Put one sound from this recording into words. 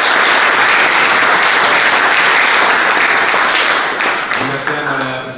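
Hands clap in steady applause.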